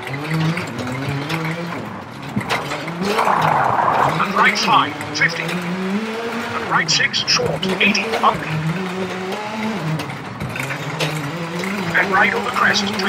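A rally car engine revs hard, rising and falling with gear changes.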